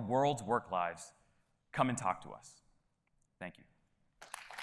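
A man speaks into a microphone with animation, in a large echoing hall.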